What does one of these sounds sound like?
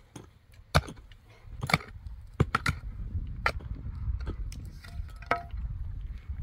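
A pickaxe strikes dry, stony ground.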